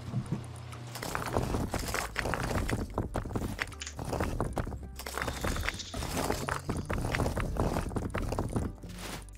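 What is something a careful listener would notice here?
Short clicks and rustles sound as items are shuffled around in quick succession.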